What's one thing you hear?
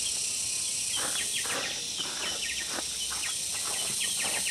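Hands pat and press loose soil.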